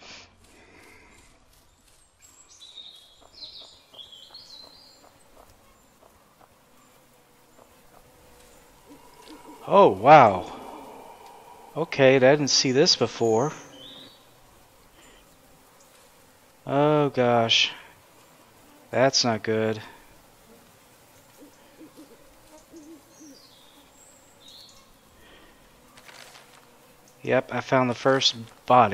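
Footsteps rustle through grass and undergrowth.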